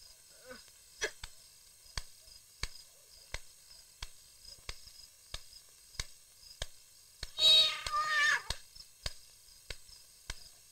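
Footsteps tap slowly and evenly on hard ground.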